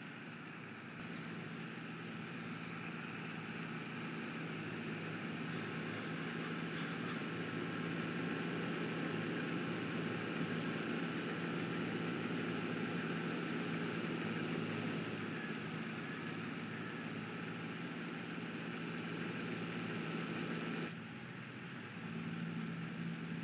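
A combine harvester engine hums loudly.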